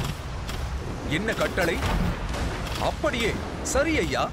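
Cannon shots boom over water.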